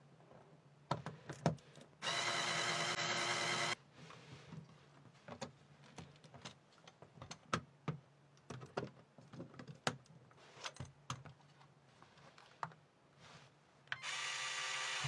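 Plastic toy parts click and clack as hands handle them.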